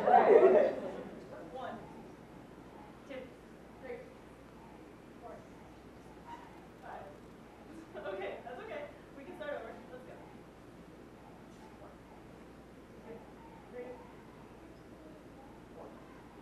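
Men and women murmur and chat quietly nearby.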